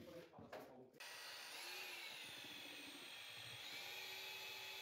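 A power drill whirs steadily while mixing plaster in a bucket.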